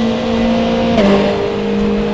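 A racing car engine drops in pitch as a gear shifts.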